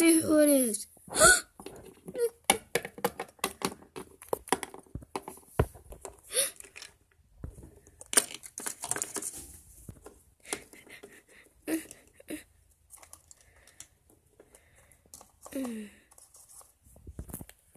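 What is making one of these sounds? Small plastic toys tap and clatter against a hard surface.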